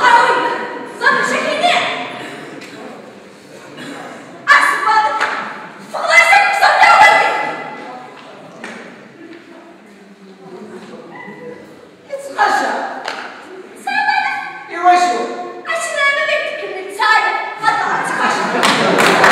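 A woman speaks loudly and with animation.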